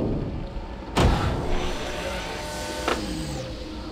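A heavy machine clanks loudly.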